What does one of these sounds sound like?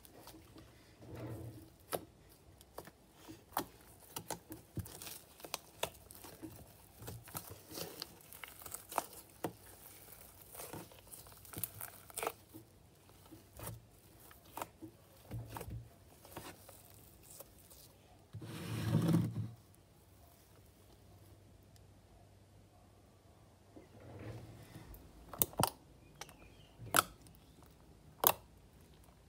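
Sticky slime squishes and crackles as hands knead it.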